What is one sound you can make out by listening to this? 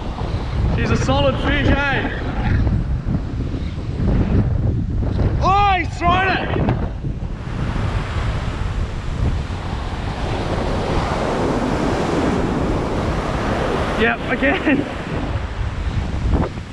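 Surf breaks and washes up onto a beach.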